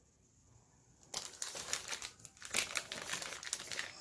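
Plastic wrapping crinkles under a hand.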